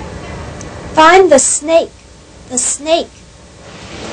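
A woman speaks calmly into a handheld recorder.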